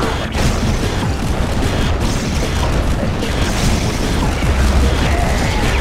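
Rapid gunfire rattles in a battle.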